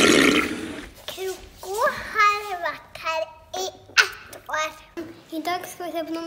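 A young girl speaks close to the microphone.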